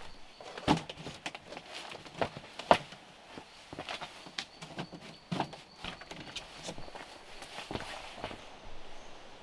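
Bamboo slats creak and knock.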